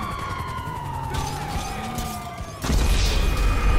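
A car engine runs as a car drives away.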